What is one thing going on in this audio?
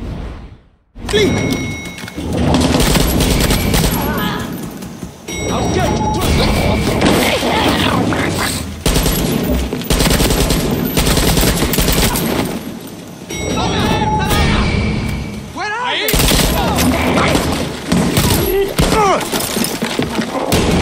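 Gunfire rattles loudly in rapid bursts, echoing in a large hall.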